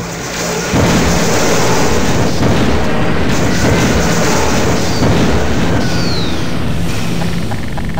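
A video-game energy beam weapon hums as it fires.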